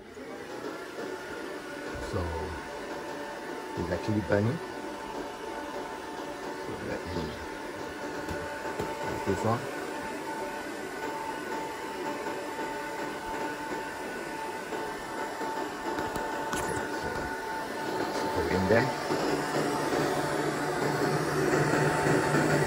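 A laser engraver hums steadily with a whirring fan.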